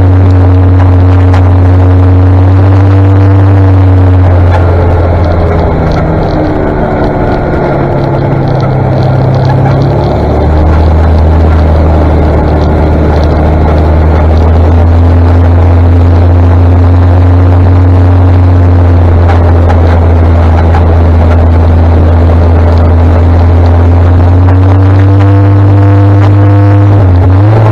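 A motorcycle engine hums steadily close by, changing pitch as it rides.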